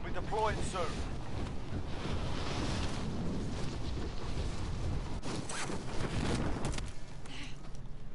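Wind rushes loudly during a freefall.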